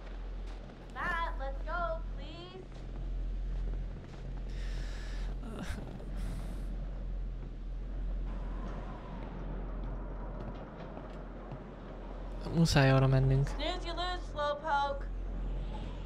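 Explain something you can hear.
A young man talks and laughs into a close microphone.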